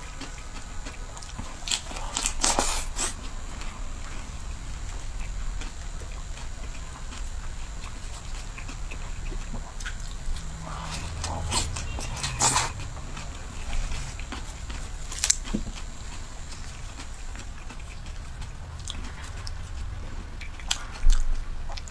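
A young woman chews food with wet mouth sounds close to a microphone.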